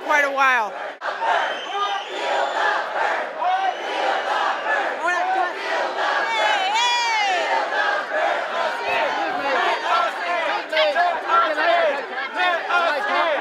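A crowd chants and shouts loudly in an echoing hall.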